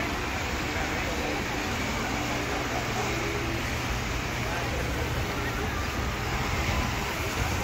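Fountains splash steadily outdoors.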